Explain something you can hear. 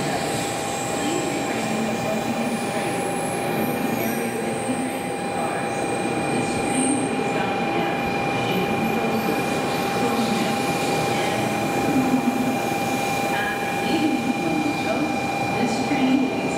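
A high-speed train glides past with a steady whirring rumble.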